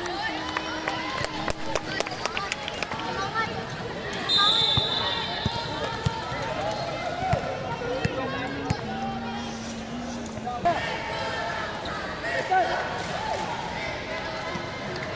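Children shout and chatter in a large echoing hall.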